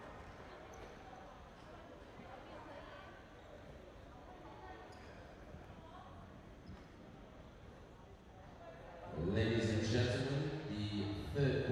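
Sneakers squeak on a hardwood court in a large echoing hall.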